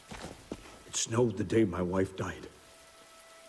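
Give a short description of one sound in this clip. A man speaks quietly and gravely nearby.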